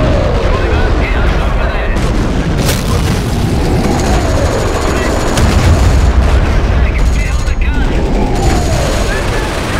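A tank engine rumbles and its tracks clank.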